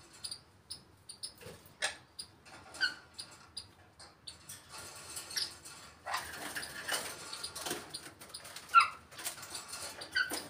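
A parrot chirps, whistles and squawks close by.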